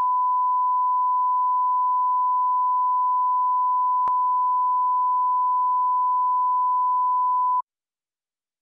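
A steady, high-pitched test tone sounds and then cuts off abruptly.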